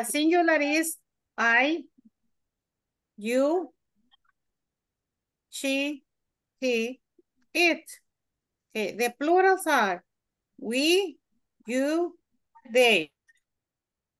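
A woman speaks slowly and clearly over an online call, pausing between phrases.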